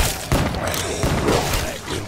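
A burst of flame roars.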